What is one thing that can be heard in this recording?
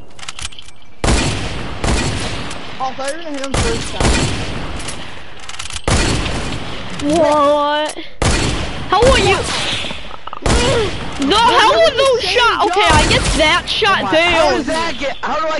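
Loud gunshots fire in bursts, each shot followed by a short ringing echo.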